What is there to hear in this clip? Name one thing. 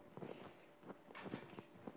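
A cloth rubs across a blackboard.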